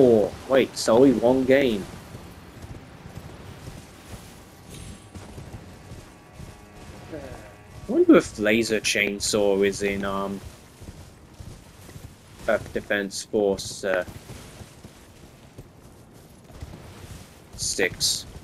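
A horse's hooves thud as it gallops over the ground.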